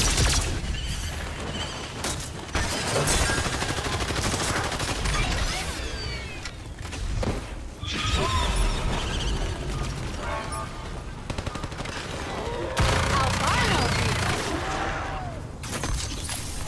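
Energy guns fire in rapid bursts.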